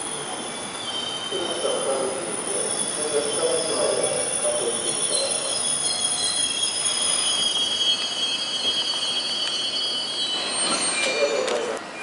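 A train pulls in with brakes squealing in high, drawn-out tones.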